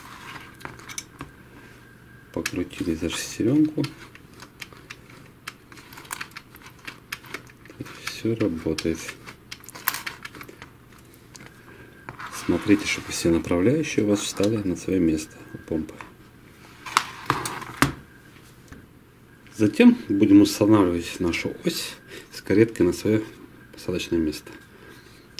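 Plastic and metal parts click and clatter as they are handled.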